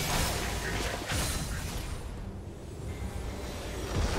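Game spells crackle and blast in a fight.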